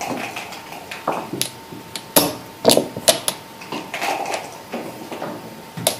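Checkers click against each other as they are picked up and set down on a board.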